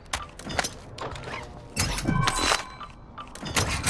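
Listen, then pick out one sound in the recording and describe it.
A metal locker rattles open.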